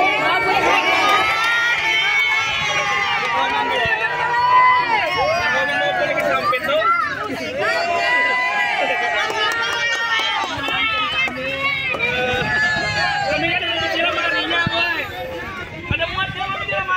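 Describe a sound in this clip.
A crowd of women cheers and chatters excitedly nearby.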